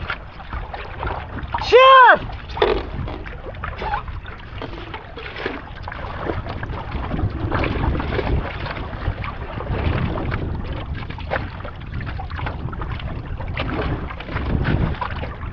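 Small waves lap against a board.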